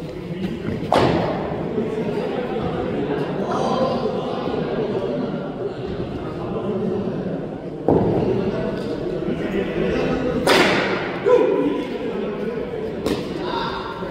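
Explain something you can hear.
A cricket bat sharply strikes a ball several times.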